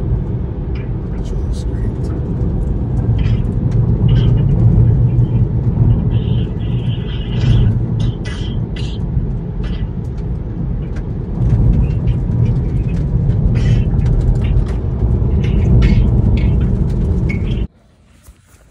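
Tyres rumble steadily over a snowy road inside a moving car.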